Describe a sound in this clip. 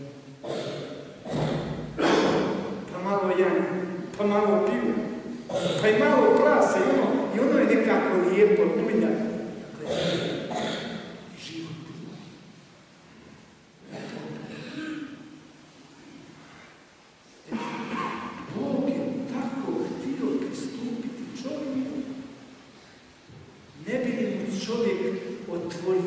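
An elderly man preaches with animation through a microphone in a large echoing hall.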